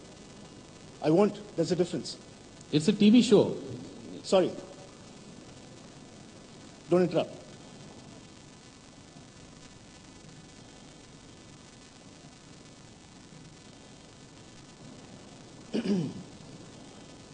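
A middle-aged man speaks into a microphone, heard through loudspeakers in a large hall.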